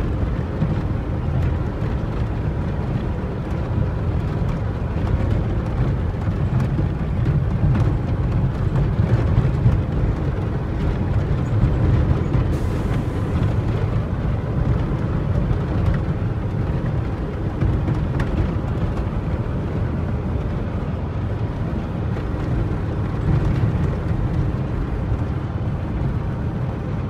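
Tyres crunch and rattle over a rough dirt road.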